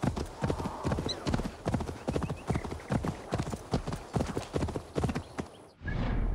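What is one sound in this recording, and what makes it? Horse hooves thud steadily on soft ground at a gallop.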